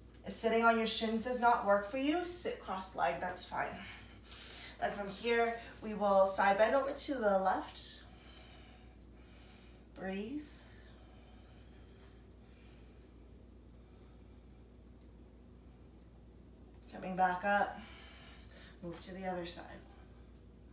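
A young woman speaks calmly and clearly, close to a microphone, in short phrases with pauses.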